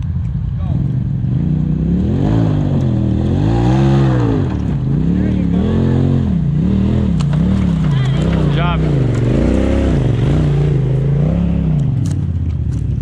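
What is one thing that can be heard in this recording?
An off-road vehicle's engine revs up and down hard.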